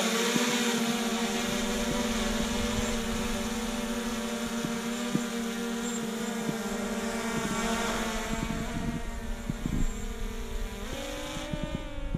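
A drone's propellers whine with a steady, high buzz that jumps up in pitch near the end.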